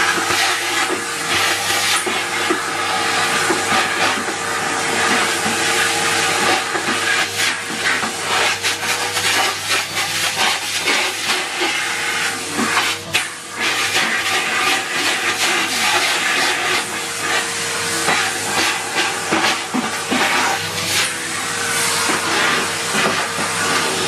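A vacuum cleaner motor whirs steadily.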